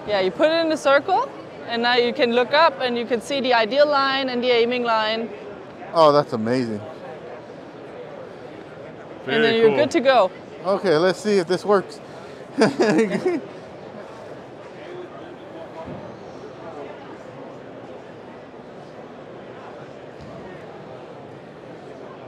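A murmur of many voices echoes through a large hall.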